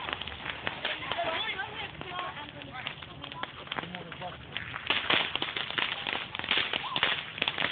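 Firework sparks crackle and pop close by.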